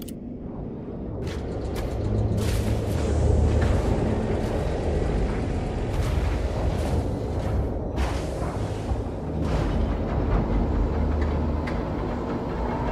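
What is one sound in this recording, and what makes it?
A deep mechanical rumble swells and rolls on as a heavy lift rises.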